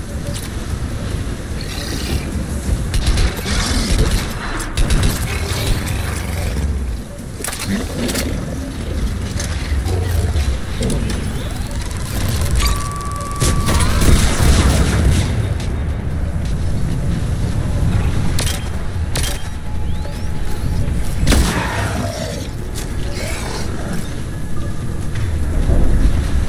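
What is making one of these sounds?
Rain and wind roar steadily outdoors.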